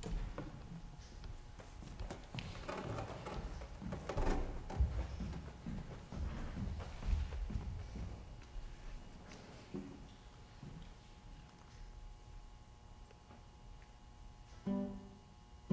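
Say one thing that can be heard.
A classical guitar plays softly and slowly.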